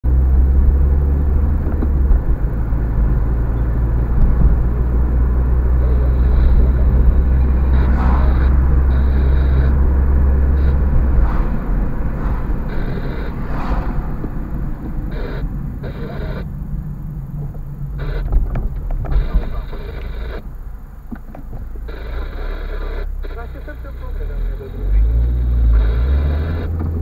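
Tyres roll on the road surface.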